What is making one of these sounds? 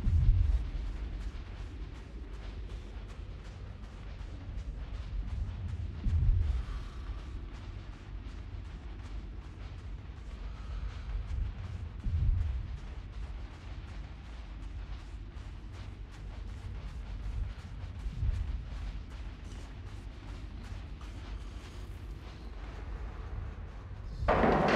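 Many feet march in a steady rhythm on a hard floor.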